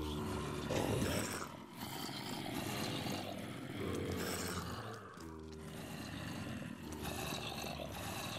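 Zombies groan and moan in low, drawn-out voices.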